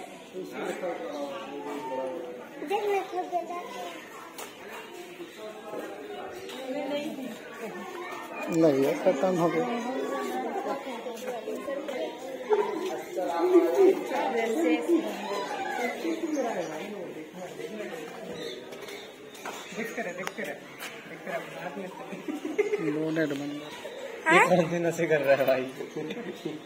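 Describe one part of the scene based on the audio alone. Several men and women talk and chatter close by, outdoors.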